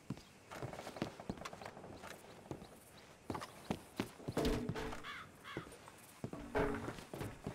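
Boots thud on hollow wooden boards.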